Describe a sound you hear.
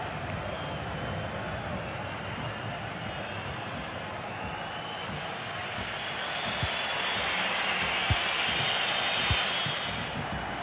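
A large stadium crowd roars steadily, swelling louder.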